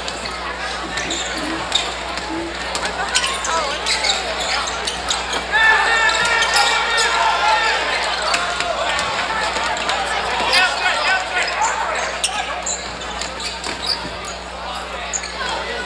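Sneakers squeak sharply on a hardwood floor.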